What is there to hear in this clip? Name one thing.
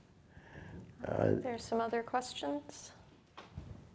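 A middle-aged woman speaks with animation through a microphone.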